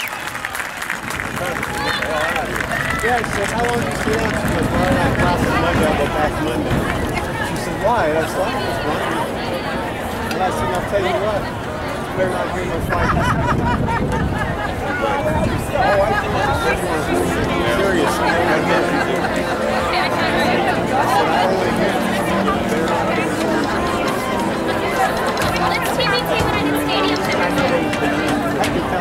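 Drums beat in rhythm with a marching band.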